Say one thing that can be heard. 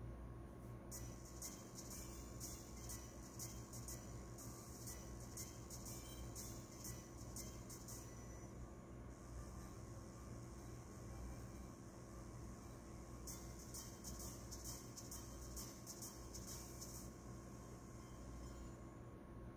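Tinny electronic game music plays from a small speaker.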